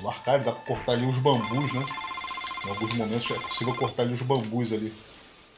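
Tones chime as a score tallies up.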